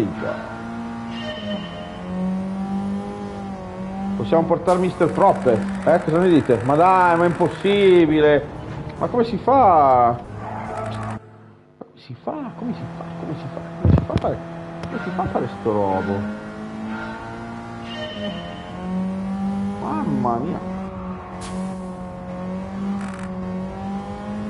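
A game car engine hums and revs steadily.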